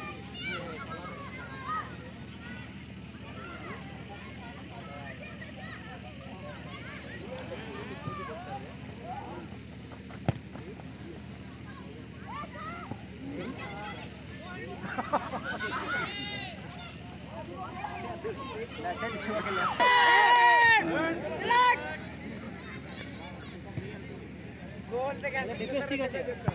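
Young players call out to each other while running.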